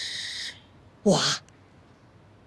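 A young woman asks a short question.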